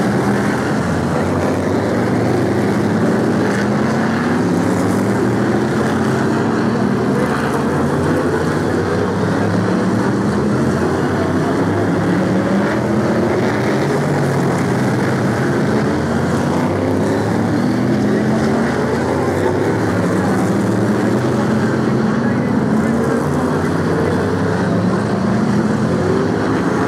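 V8 stock car engines roar, revving up and down as the cars race around a track.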